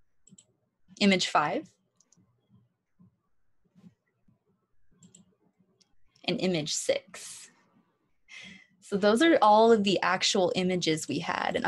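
A young woman speaks calmly over an online call, pausing between phrases.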